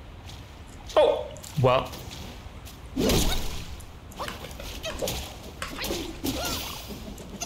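A staff strikes with heavy thuds and whooshes.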